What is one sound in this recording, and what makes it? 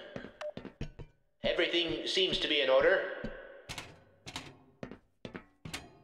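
Boots clank on the rungs of a metal ladder.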